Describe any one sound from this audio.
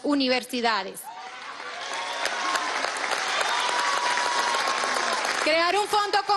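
A large crowd claps and cheers.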